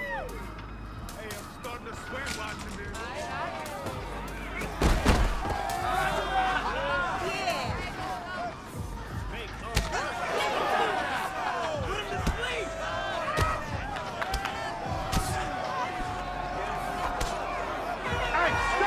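Punches and kicks land with sharp thuds.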